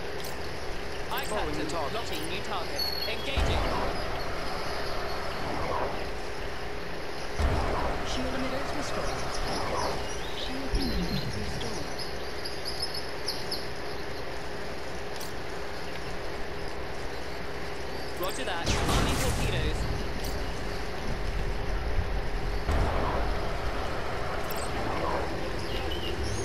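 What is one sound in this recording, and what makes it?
Short electronic beeps chirp.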